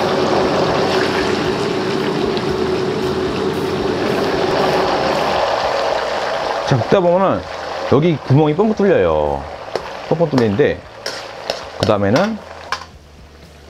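A metal ladle scrapes and taps against a wok.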